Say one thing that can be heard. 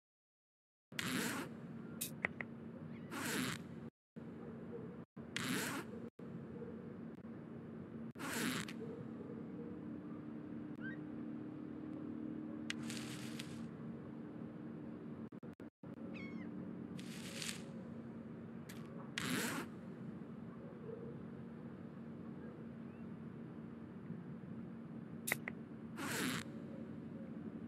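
A soft whoosh sounds each time a menu opens or closes.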